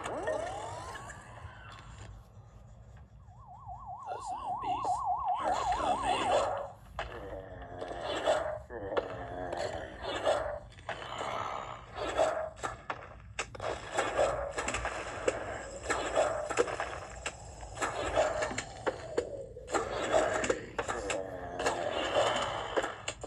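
Game music and sound effects play from a tablet's speaker.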